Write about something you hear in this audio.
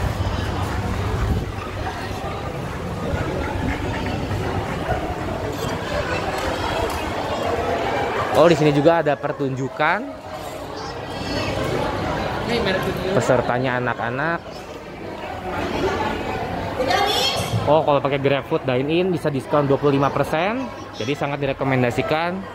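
A crowd chatters in a large echoing hall.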